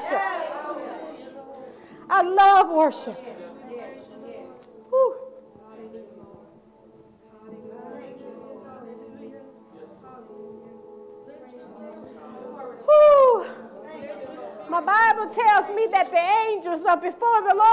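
A woman speaks passionately into a microphone, praying aloud in an echoing room.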